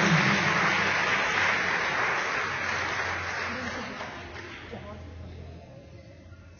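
An audience applauds in a large hall, then the applause fades.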